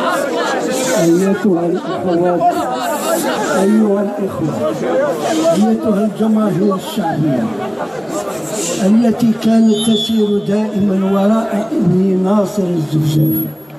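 A middle-aged man speaks forcefully through a microphone and loudspeaker.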